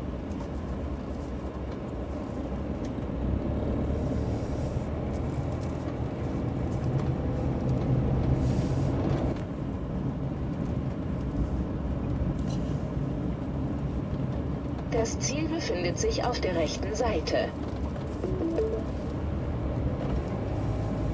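A small engine hums steadily as a vehicle rolls along a road.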